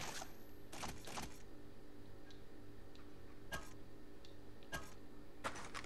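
Short game menu clicks sound several times.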